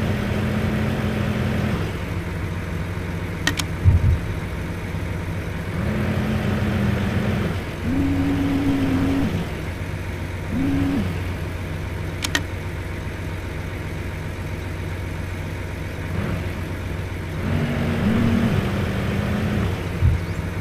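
A crane's hydraulic motor whines in short bursts.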